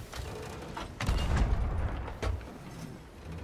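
A cannon fires with a loud, deep boom.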